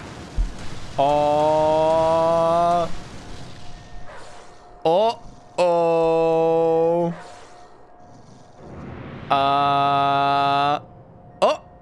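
Sustained chiming tones ring out from a video game.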